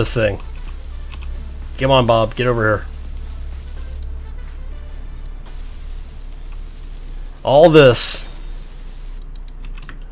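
A welding tool hisses and crackles with sparks.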